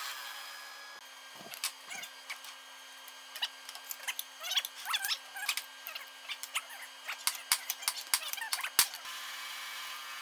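Metal tools clink and knock against a vise.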